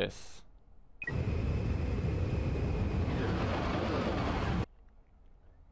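A spaceship's engine roars steadily as it takes off, then cuts off.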